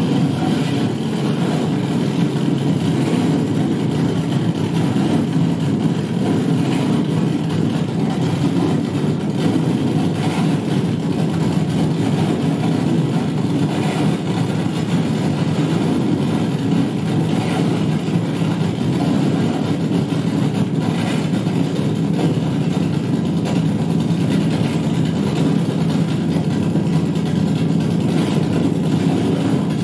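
Loud, droning electronic music plays through an amplifier throughout.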